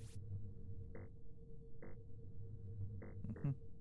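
Short electronic beeps sound as keypad buttons are pressed in a game.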